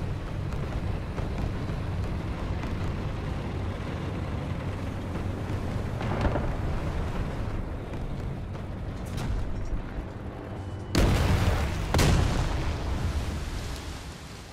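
A heavy tank engine rumbles low and steady.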